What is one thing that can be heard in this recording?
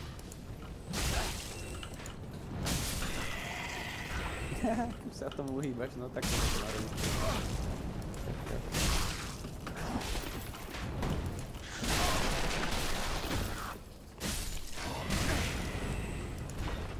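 Sword blows clash and thud in a game fight.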